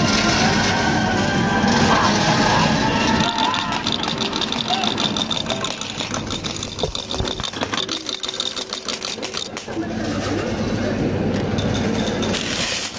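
Electronic game music and jingles play loudly from a nearby loudspeaker.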